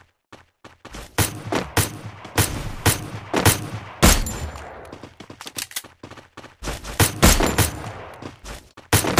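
Gunshots crack loudly in bursts.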